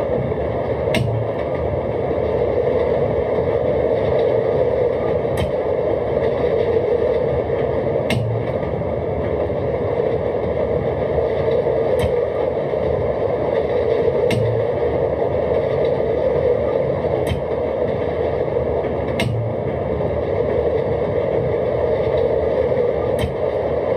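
Train wheels clack over rail joints every few seconds.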